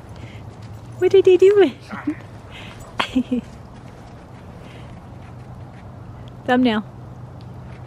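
A dog whines and yelps close by.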